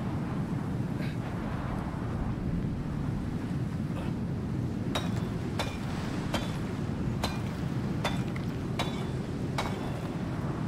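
A pickaxe strikes rock with sharp, regular knocks.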